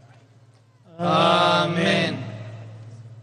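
A man sings a long chanted phrase through loudspeakers, echoing outdoors.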